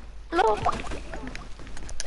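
Ice shatters with a crunchy burst.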